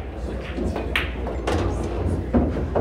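Pool balls clack together sharply.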